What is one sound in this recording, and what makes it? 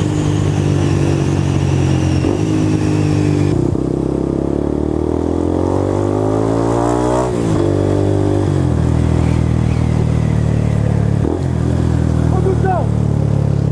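A motorcycle engine hums steadily up close, rising in pitch as it speeds up and dropping as it shifts gear.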